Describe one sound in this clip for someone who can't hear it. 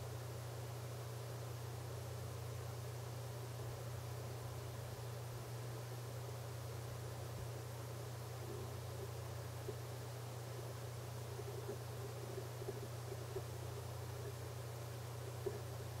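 Wristwatches tick softly and steadily.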